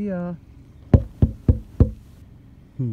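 Knuckles tap several times on a car window.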